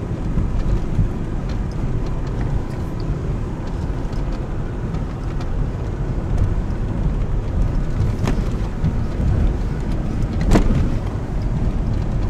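A vehicle engine rumbles low and steady while climbing a rough track.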